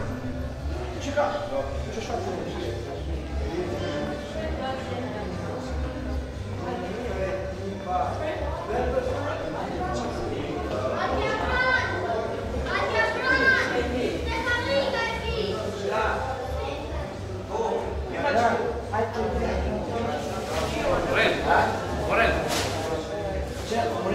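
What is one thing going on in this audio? Men and women chat and greet one another nearby in a large echoing hall.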